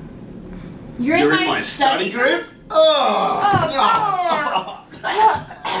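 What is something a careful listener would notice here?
A young woman talks and laughs.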